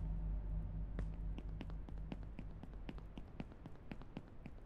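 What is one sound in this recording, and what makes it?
Footsteps tap quickly on hard stone.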